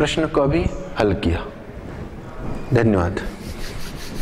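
A man speaks clearly and steadily, as if explaining to a class.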